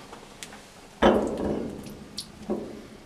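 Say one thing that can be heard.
A glass tube splashes into water in a beaker.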